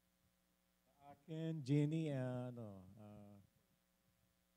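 An older man speaks through a microphone.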